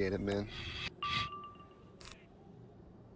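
A bright magical chime rings out briefly.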